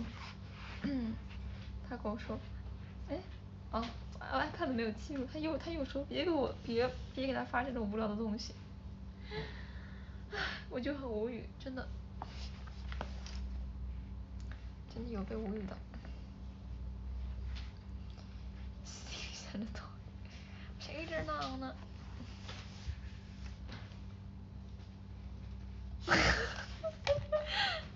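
A young woman talks softly and casually into a nearby phone microphone.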